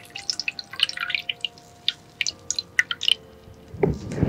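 Fingernails tap on a hollow coconut bowl right against a microphone.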